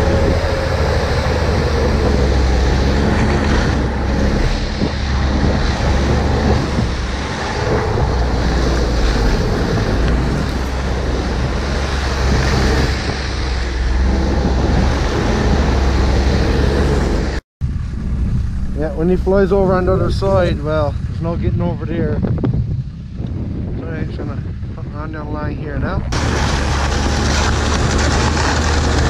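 A snowmobile engine drones steadily while riding over snow.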